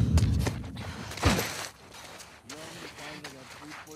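A dull thump sounds as a body hits the ground.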